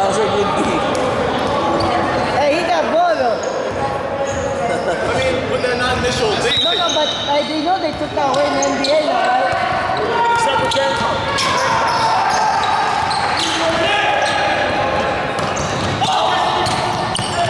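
Men shout and talk across a large echoing gym.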